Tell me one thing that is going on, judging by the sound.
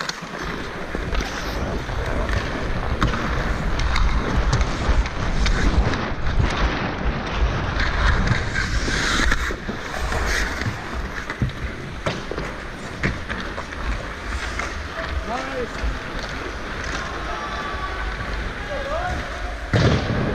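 Ice skates scrape and carve across the ice close by.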